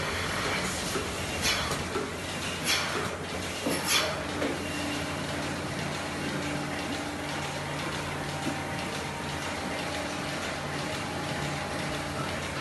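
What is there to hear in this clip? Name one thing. Milking machines hum and pulse steadily.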